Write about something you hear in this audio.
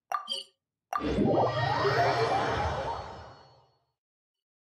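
A magical whoosh swells and fades.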